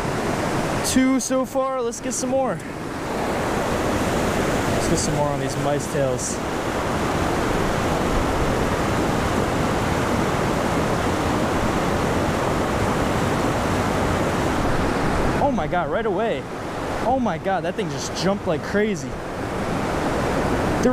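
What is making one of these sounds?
Rushing water roars loudly and steadily close by.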